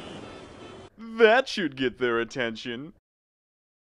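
A man speaks in a sly, playful voice.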